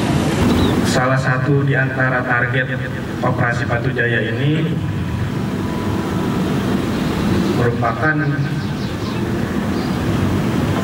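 A man speaks steadily through a microphone outdoors.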